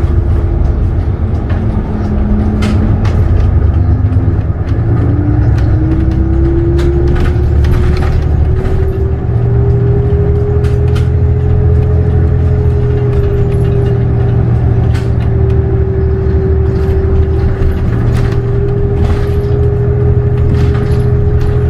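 A bus engine hums and whines steadily, rising in pitch as the bus speeds up.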